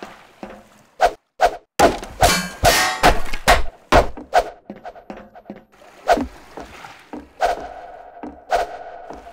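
Footsteps thud on wooden planks and metal.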